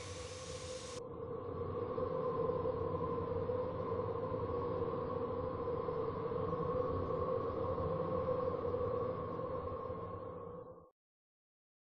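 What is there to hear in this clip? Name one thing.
A train rumbles steadily past in the distance.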